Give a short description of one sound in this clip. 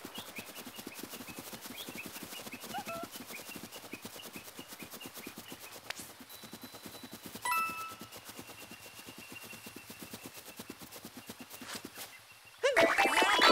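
Quick, light footsteps patter on grass.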